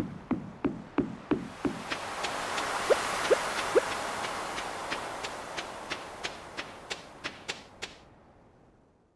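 Waves wash softly onto a shore.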